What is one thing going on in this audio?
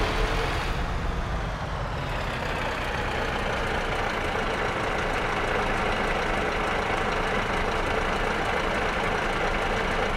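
A truck engine rumbles steadily as the truck reverses slowly.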